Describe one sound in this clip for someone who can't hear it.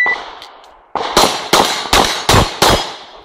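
A pistol fires a rapid string of loud shots outdoors.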